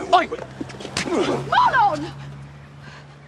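A man coughs and splutters close by.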